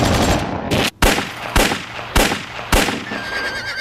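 Gunshots ring out sharply, one after another.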